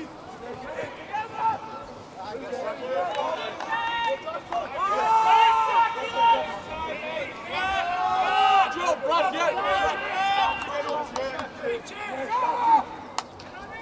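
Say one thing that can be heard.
Men shout and call out to each other across an open playing field.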